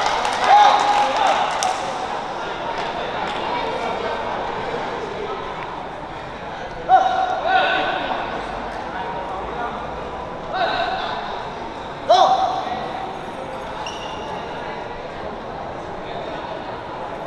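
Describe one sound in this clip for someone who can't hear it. A shuttlecock is struck with a racket.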